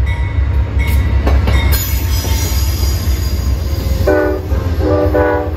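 A diesel locomotive rumbles loudly past, close by.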